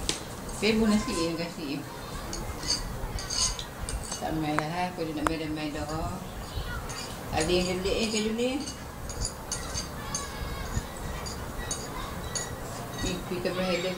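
A spoon clinks on a plate.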